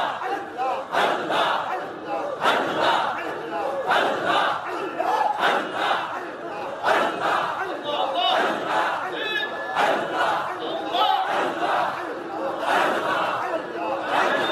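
A middle-aged man preaches fervently through a microphone and loudspeakers, his voice echoing.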